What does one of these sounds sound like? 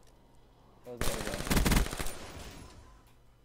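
A video game rifle fires a rapid burst of gunshots.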